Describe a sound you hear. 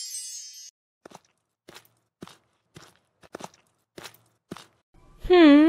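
Footsteps tap along a path.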